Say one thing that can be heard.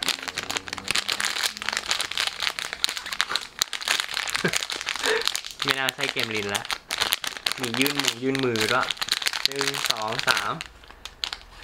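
A plastic wrapper crinkles and rustles as it is torn open.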